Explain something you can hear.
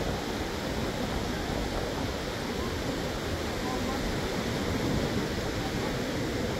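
Small waves wash softly onto the shore, steady throughout.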